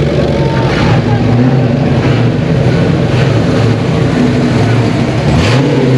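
A car engine revs up and down.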